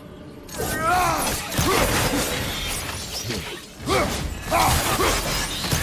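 An axe swings and strikes with heavy thuds.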